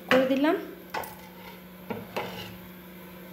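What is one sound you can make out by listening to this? A glass lid clinks onto a metal pan.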